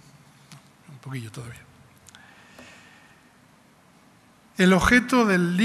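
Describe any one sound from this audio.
A man speaks through a microphone in a large room.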